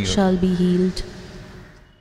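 An elderly man sings a short phrase through a microphone in a reverberant hall.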